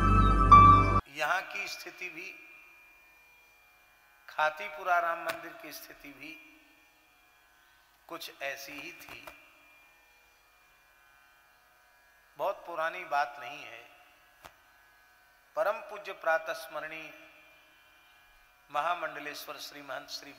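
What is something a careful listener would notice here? An elderly man speaks calmly into a microphone, with pauses between phrases, in an echoing space.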